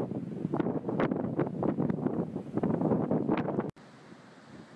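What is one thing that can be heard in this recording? Wind buffets loudly in gusts.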